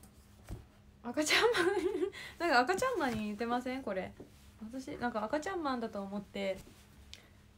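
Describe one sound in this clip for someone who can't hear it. A young woman speaks softly and animatedly, close to a microphone.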